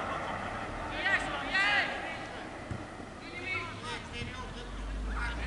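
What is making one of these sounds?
Men shout to each other in the distance outdoors.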